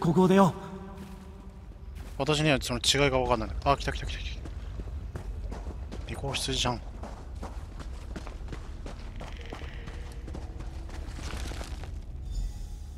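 Footsteps crunch on gravel and rock.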